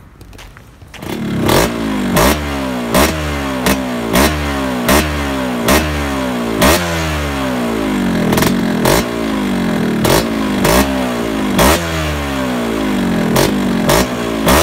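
A motorcycle engine idles with a steady, uneven putter.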